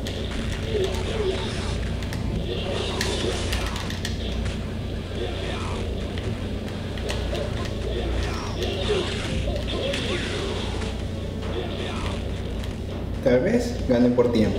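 Fighting game music plays steadily.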